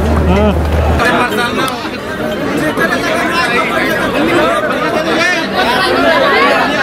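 A crowd of women chatters nearby outdoors.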